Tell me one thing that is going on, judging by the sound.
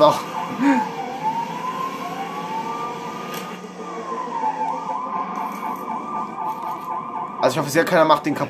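A police siren wails with rising and falling pitch.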